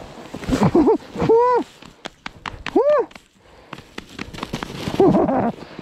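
A bubble wrap sled slides over snow.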